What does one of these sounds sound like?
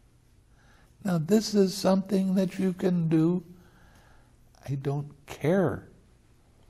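An elderly man speaks calmly and expressively into a close microphone.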